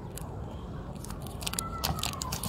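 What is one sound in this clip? Backing paper crackles as it is peeled from tape.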